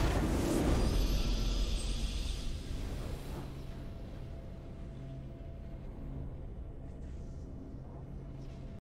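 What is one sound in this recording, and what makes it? A triumphant fanfare plays and slowly fades.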